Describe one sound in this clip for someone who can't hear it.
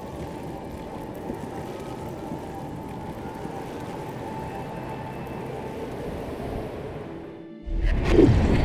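Wind howls through a heavy snowstorm.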